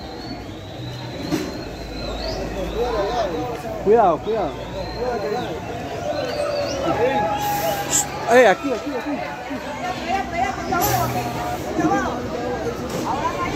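A bus engine hums as the bus approaches and pulls up close.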